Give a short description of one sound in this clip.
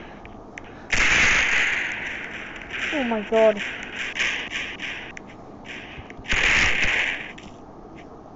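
A gun fires a loud burst of shots with a booming blast.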